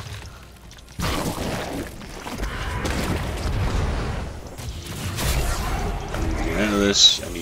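Magic spells crackle and burst in a fast fight.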